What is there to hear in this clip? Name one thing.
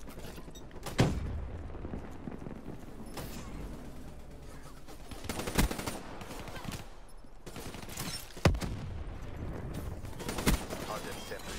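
A rifle fires loud single shots, each followed by a short echo.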